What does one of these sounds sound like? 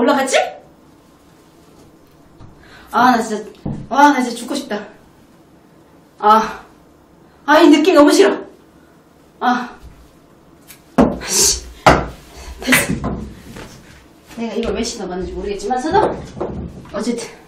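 A young woman speaks in short bursts close to a microphone.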